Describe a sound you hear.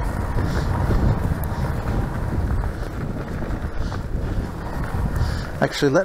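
Wind rumbles steadily across the moving bike.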